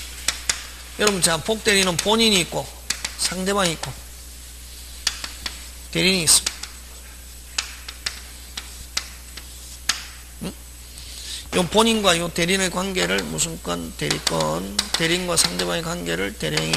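A man speaks through a microphone in a lecturing tone, with pauses.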